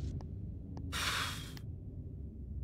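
A soft electronic blip sounds once.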